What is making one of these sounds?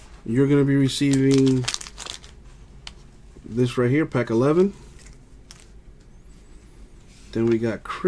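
Foil wrappers crinkle softly as hands handle card packs.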